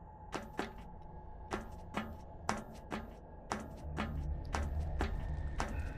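Hands climb a wooden ladder, knocking on its rungs.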